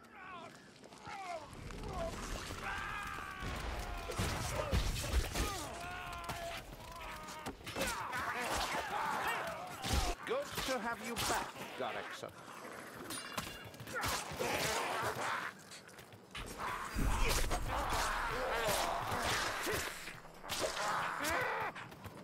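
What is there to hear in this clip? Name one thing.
Young men talk excitedly into microphones.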